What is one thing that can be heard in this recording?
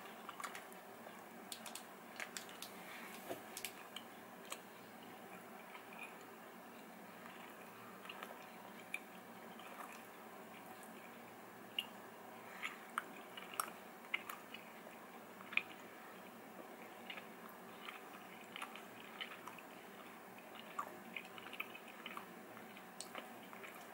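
A young man chews food quietly, with small wet clicks.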